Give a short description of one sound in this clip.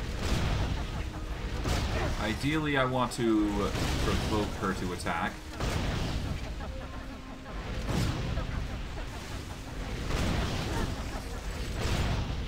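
Magic spells crackle and whoosh in a fight.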